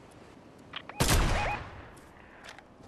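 A rifle fires a single loud shot that rings out and fades.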